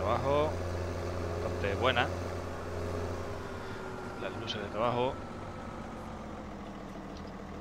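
A tractor engine hums steadily at low speed.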